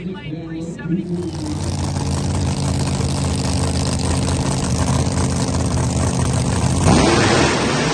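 Drag racing cars rumble on the start line.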